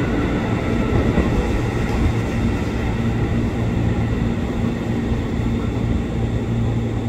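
An electric train rumbles steadily as it pulls away along the tracks.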